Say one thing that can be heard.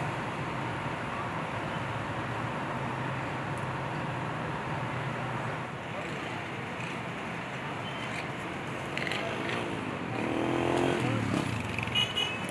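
Traffic hums steadily in a busy street outdoors.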